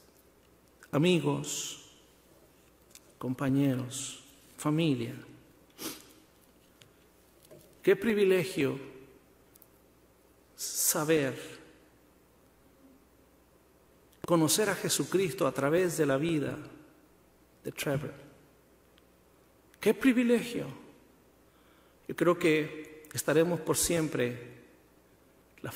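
A man speaks slowly and solemnly into a microphone, with pauses between phrases.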